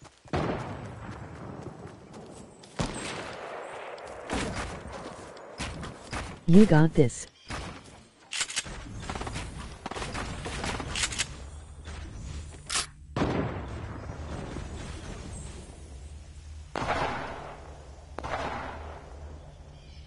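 Quick footsteps patter on grass and wood.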